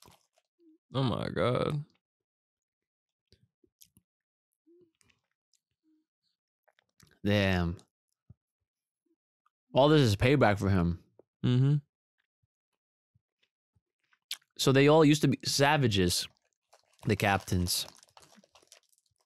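A young man speaks calmly into a close microphone in short bursts with long pauses.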